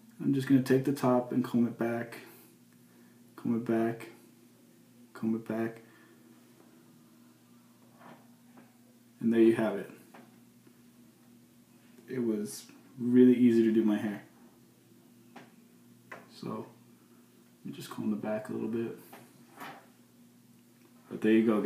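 A young man talks calmly and close by, in short bursts with pauses.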